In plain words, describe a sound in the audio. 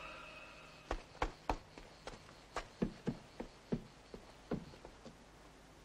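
Footsteps crunch on stony ground.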